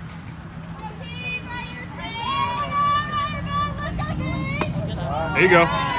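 Young women shout and cheer from the field.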